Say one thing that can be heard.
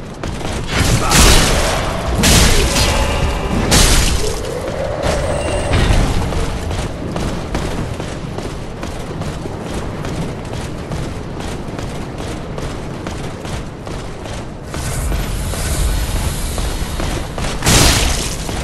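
Swords clang and strike in heavy blows.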